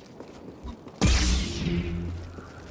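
A lightsaber ignites with a loud buzzing hum.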